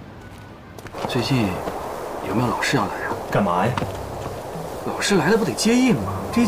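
A young man speaks with animation, close by.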